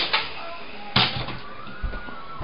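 A toy helicopter crashes onto the floor with a clatter.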